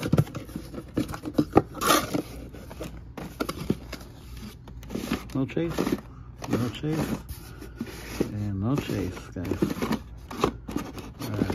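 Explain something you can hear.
Plastic packages clack and rattle against each other.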